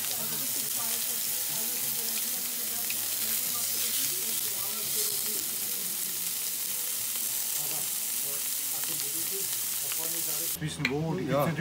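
Meat sizzles steadily on a hot griddle.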